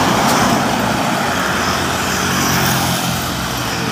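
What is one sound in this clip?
Truck tyres roar on the road surface.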